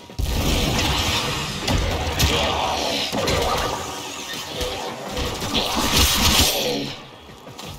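A blade whooshes and slashes through the air in quick repeated swings.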